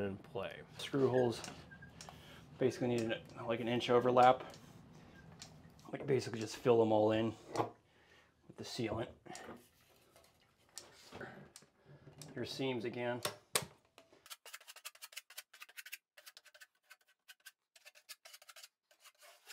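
A caulking gun clicks as its trigger is squeezed.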